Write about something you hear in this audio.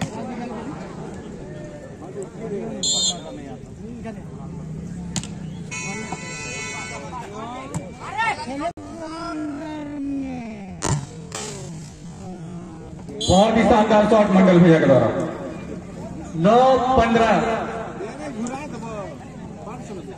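A crowd of spectators chatters and cheers loudly outdoors.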